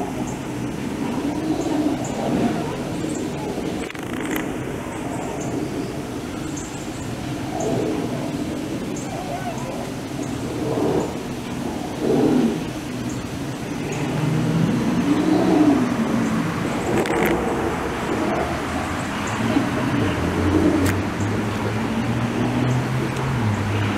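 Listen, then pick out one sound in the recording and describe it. A large animatronic monster growls and moans loudly through a loudspeaker.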